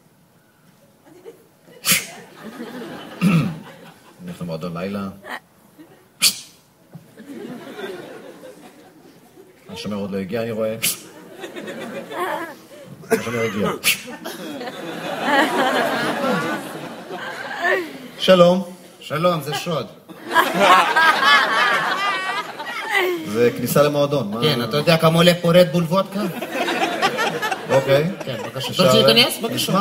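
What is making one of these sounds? A woman speaks on a stage.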